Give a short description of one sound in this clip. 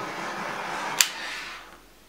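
A heat gun switches off with a click.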